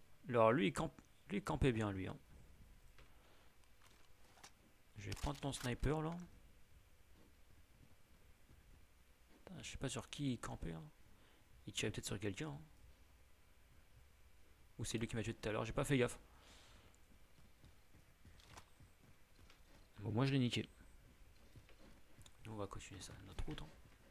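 A young man talks into a close microphone in short bursts with pauses.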